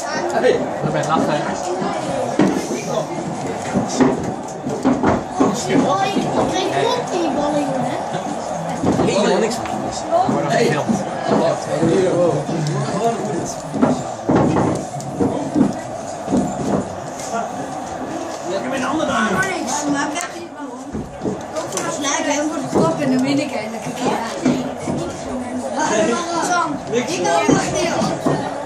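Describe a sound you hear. Young boys chatter with animation nearby.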